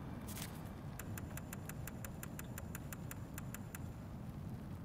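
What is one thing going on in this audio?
Soft menu clicks tick quickly, one after another.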